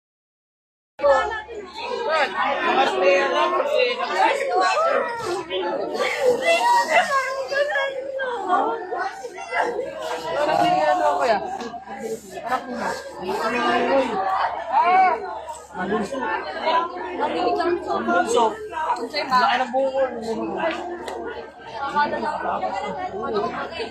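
A crowd of men and women talks and shouts excitedly nearby, outdoors.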